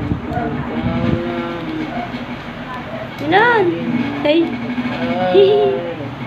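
A baby babbles and coos.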